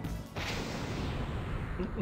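A loud magical whoosh bursts out.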